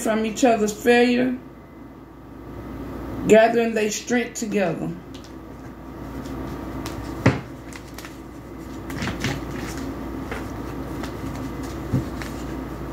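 Playing cards are shuffled and laid down softly.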